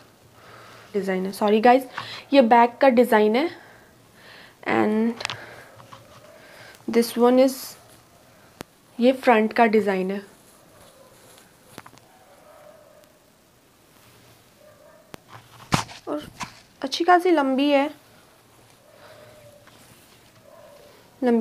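A young woman speaks calmly close by, in short bursts.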